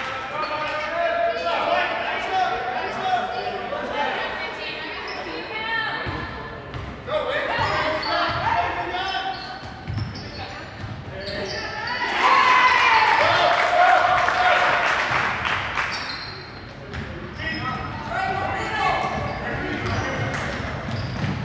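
Spectators in a large echoing gym shout and cheer.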